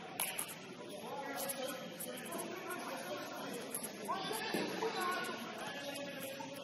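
A ball thumps off feet and the floor, echoing in a large hall.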